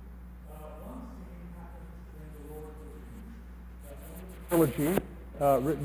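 A man speaks with animation at a distance in a large echoing hall.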